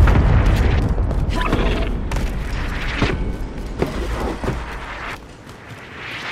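Footsteps thud on a hard roof.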